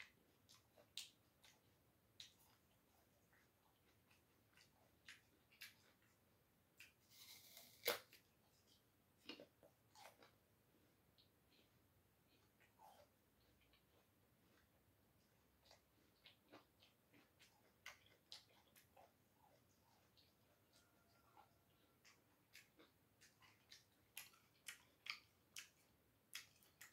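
A man chews food with soft, wet smacking sounds.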